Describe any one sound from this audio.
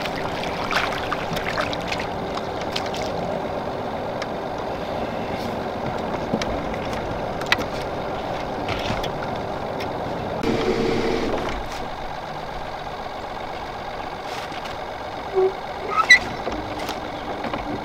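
A fishing reel clicks as line is reeled in.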